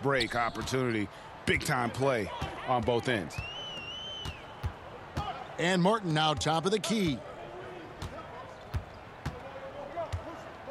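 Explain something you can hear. A basketball bounces on a hardwood court.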